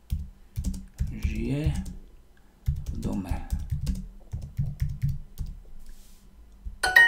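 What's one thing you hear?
Keys click rapidly as someone types.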